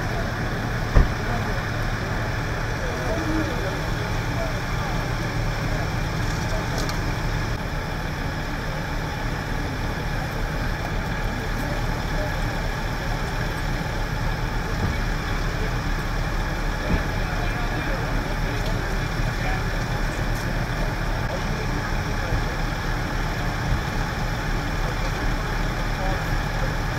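Men talk in low voices nearby.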